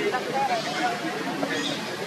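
A baby monkey squeals in short, high calls.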